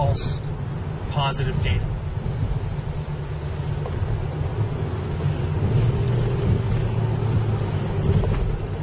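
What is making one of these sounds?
A car engine hums steadily from inside while driving.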